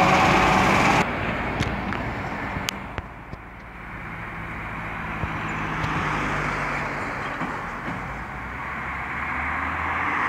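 Cars pass by on a road.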